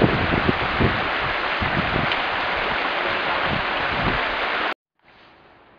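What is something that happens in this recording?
A stream rushes over rocks.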